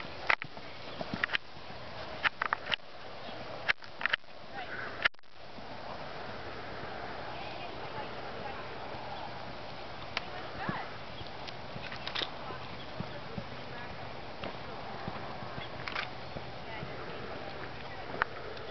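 Hooves thud on soft dirt as a horse canters.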